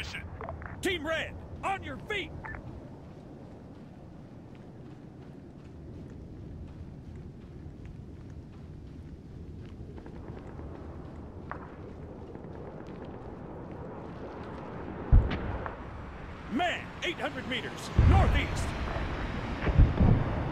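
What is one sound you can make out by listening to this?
Footsteps crunch steadily over sandy ground.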